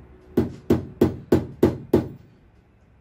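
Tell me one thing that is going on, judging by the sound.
A tool taps on a metal hasp.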